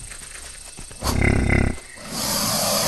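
A heavy body slams into another with a loud thud.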